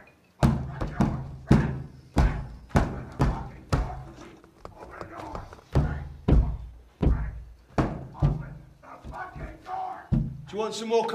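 A hand bangs hard on a window pane again and again.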